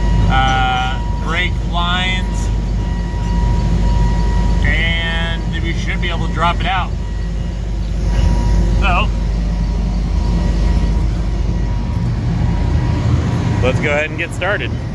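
A large engine idles nearby with a low, steady rumble.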